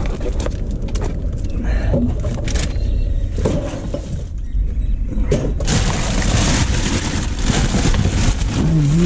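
Plastic bags and wrappers rustle and crinkle as a gloved hand pulls at them.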